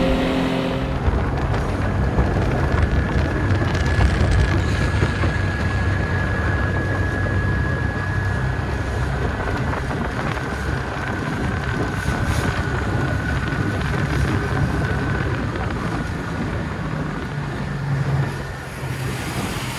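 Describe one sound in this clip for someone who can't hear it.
Wind buffets the microphone on a moving open boat.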